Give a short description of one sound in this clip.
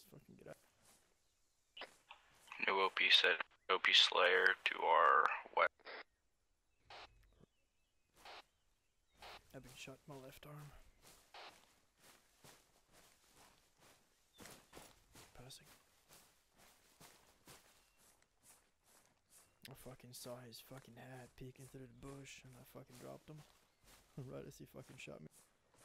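Footsteps rustle through dry grass and brush.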